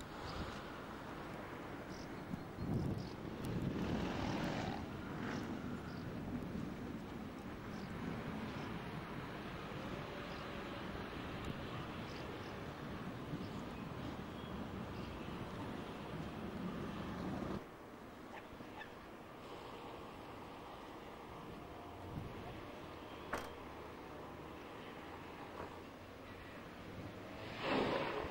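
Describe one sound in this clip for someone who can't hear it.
Wind blows and rumbles outdoors over open water.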